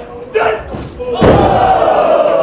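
A body slams onto a ring mat with a loud thud.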